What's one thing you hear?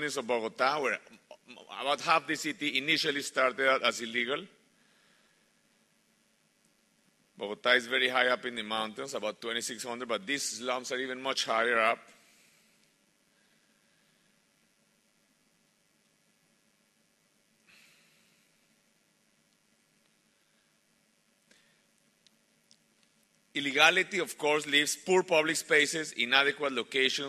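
A middle-aged man speaks calmly into a microphone, heard through a loudspeaker, with pauses.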